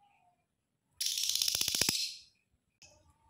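A lovebird lets out a harsh, buzzing squawk.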